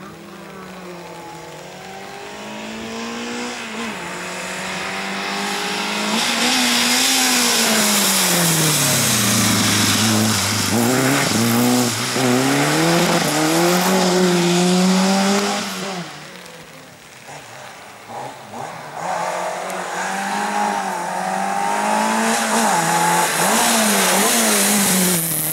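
A rally car engine revs hard as it approaches and speeds past.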